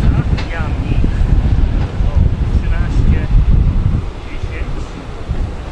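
A car drives slowly past, its engine rumbling low.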